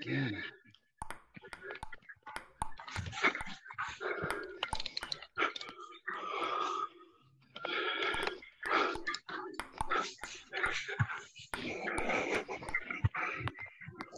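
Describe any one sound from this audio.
A table tennis ball clicks sharply against paddles and the table in a quick rally.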